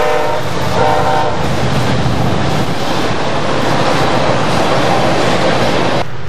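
Tank cars rumble and clatter over rails.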